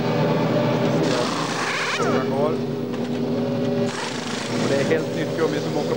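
A pneumatic wheel gun whirs in short bursts.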